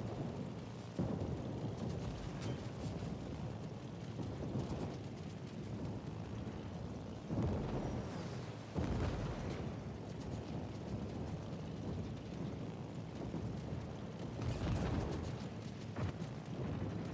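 Explosions boom in bursts.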